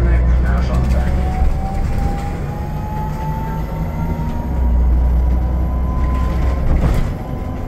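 An electric motor whines, rising in pitch as the bus speeds up.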